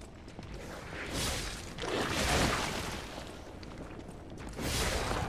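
A heavy weapon swings and strikes with loud whooshing blows.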